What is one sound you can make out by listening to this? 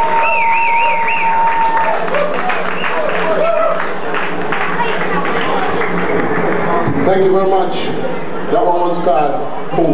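A crowd of men and women talk and shout over each other in a noisy room.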